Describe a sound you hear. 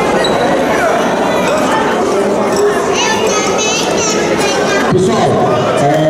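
A crowd of players cheers and chatters.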